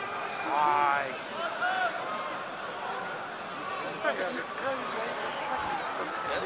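A large crowd murmurs and shouts across an open stadium.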